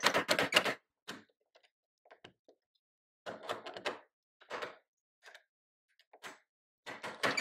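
Metal parts click and clatter as a tool is adjusted.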